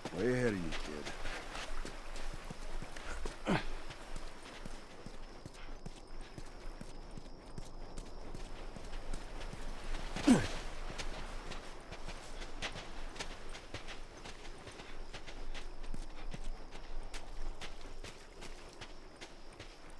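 Footsteps crunch on sandy, rocky ground.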